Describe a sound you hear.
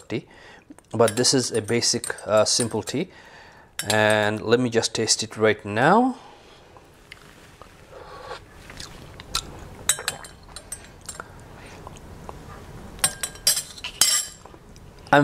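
A spoon clinks against a glass cup while stirring.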